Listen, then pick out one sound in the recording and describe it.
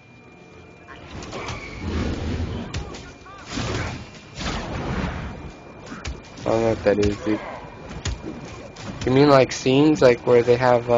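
Fiery spells whoosh and crackle in bursts.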